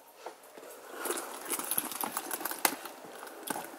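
A handbag rustles as it is moved.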